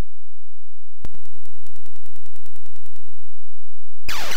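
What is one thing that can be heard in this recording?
A quick run of electronic beeps plays as the score is tallied.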